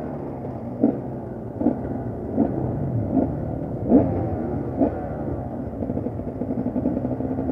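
A two-stroke enduro motorcycle idles.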